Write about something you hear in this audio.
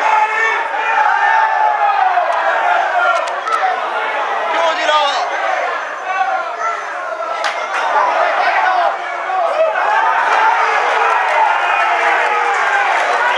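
Spectators nearby talk and call out over one another.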